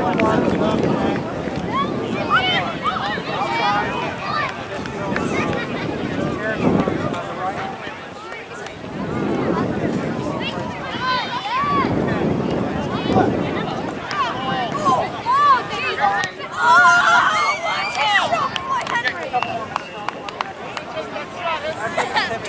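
Spectators shout and cheer from the sidelines outdoors.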